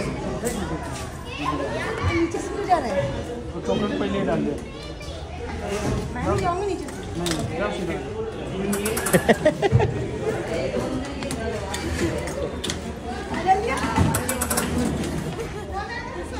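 A crowd chatters nearby in an echoing hall.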